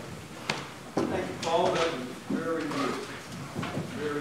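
An older man speaks into a microphone in an echoing hall.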